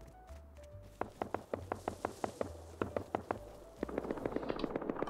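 Footsteps rustle through tall grass.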